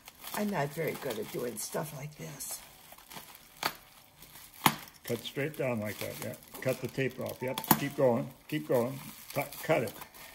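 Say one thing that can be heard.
A box cutter scrapes and slices through packing tape.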